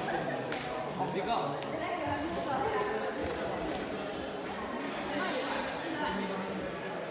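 Several young people chatter throughout in a large echoing hall.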